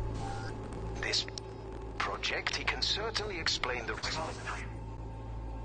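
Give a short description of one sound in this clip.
A magical blast whooshes and crackles.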